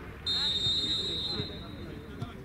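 A referee's whistle blows sharply in the distance.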